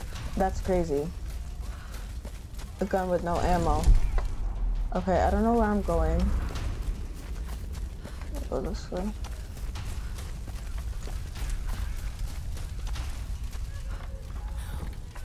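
Footsteps run over grass and wooden boards.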